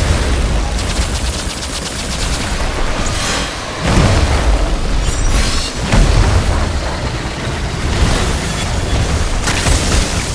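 Deep explosions boom and rumble.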